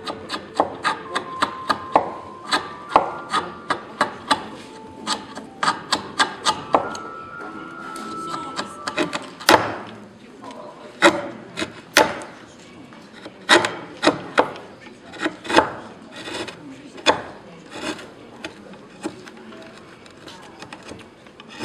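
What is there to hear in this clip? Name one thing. A chisel taps and cuts into wood in short sharp strokes.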